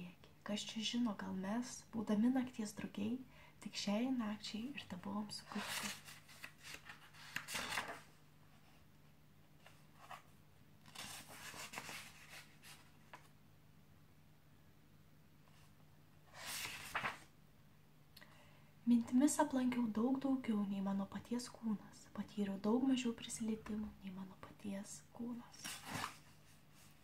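A young woman reads aloud softly, close to the microphone.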